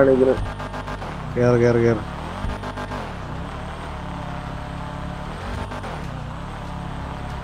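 A car engine rumbles and idles low.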